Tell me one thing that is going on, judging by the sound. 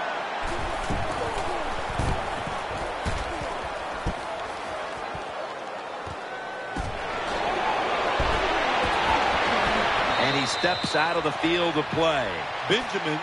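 A large stadium crowd roars steadily, growing louder partway through.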